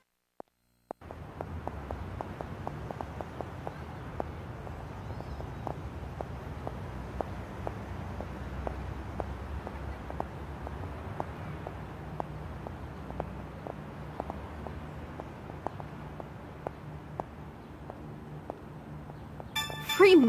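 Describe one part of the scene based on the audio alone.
Quick, light footsteps tap on hard pavement at a steady pace.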